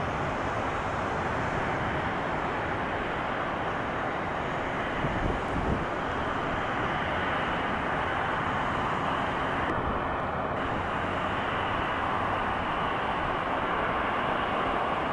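A jet airliner's engines roar steadily as it comes in to land.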